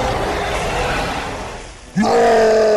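Water splashes and sloshes.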